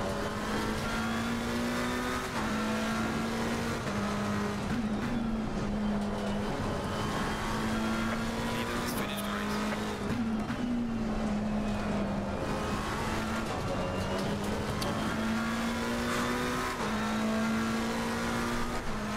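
A racing car engine roars steadily, its pitch dropping briefly with each gear change.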